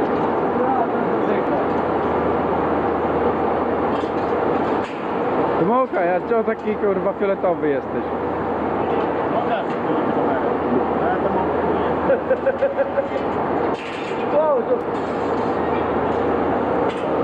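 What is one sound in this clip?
A steady roar of a furnace fills a large workshop.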